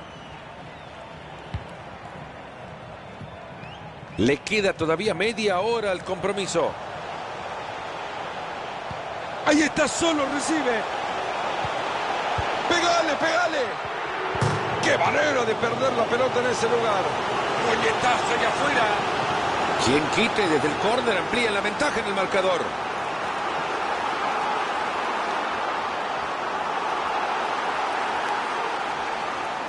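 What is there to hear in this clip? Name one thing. A stadium crowd cheers and roars steadily, growing louder.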